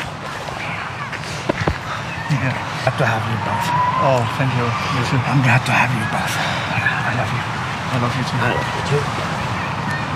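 A young man answers warmly, close by.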